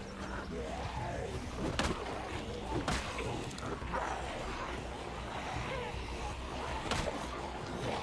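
A baseball bat thuds against bodies.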